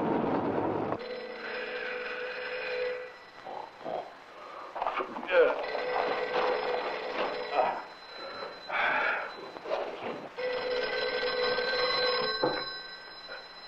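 A telephone rings repeatedly.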